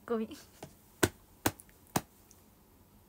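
A young woman claps her hands a few times.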